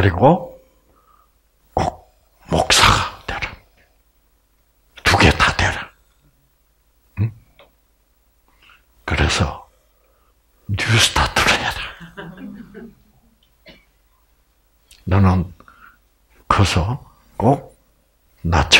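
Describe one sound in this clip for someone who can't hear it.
An elderly man speaks calmly into a microphone in short bursts with pauses.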